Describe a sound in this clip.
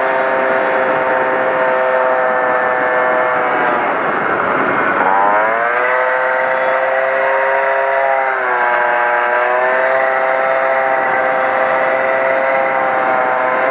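A car engine hums steadily, dropping and rising in pitch as it shifts gears.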